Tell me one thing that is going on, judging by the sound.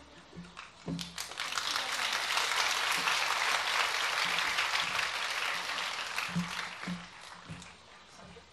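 An audience applauds outdoors.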